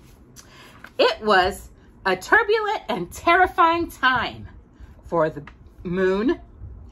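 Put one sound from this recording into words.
A woman reads aloud close by, with animation.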